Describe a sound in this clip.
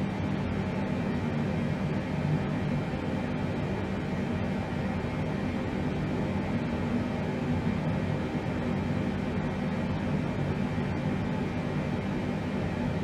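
An aircraft's engines drone steadily with a low rumbling hum.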